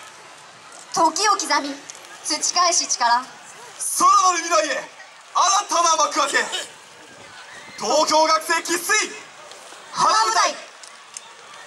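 A group of young women shout together in chorus outdoors.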